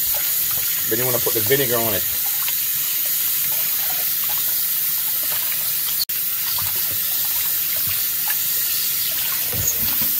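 Hands splash and rub meat in water.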